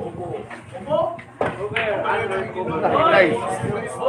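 A cue tip strikes a ball with a sharp click.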